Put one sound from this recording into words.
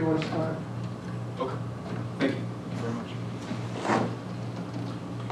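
An elderly man speaks calmly in a room with a slight echo.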